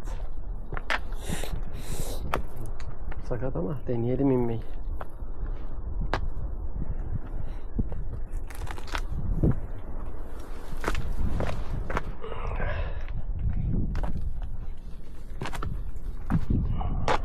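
Footsteps crunch on loose stones.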